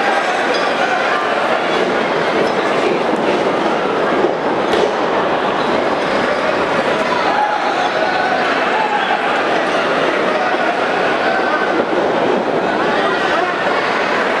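A large crowd cheers and shouts steadily.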